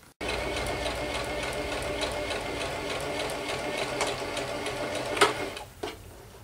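A sewing machine motor hums steadily, then stops.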